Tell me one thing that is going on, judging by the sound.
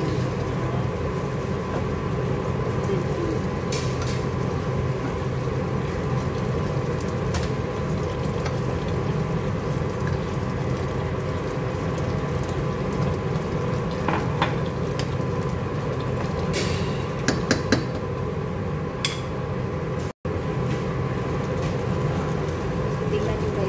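Water pours into a pot of boiling liquid.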